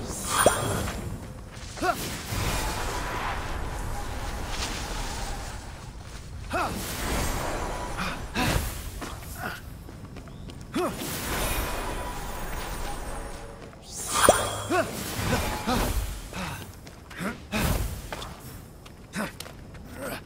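Wind rushes steadily past while gliding through the air.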